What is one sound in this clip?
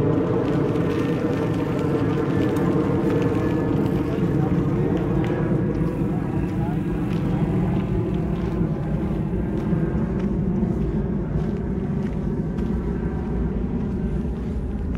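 Bicycle tyres roll and crunch steadily over a gravel path.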